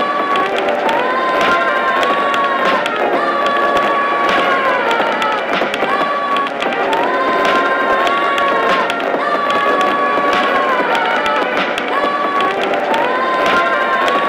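Cartoon creatures sing a bouncy tune in chorus, with a high sung melody.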